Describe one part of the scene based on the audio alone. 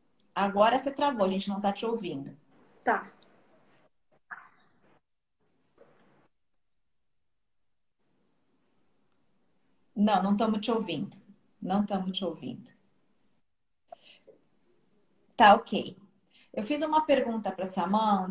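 A middle-aged woman talks calmly over an online call.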